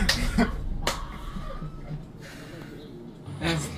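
Young men laugh softly close by.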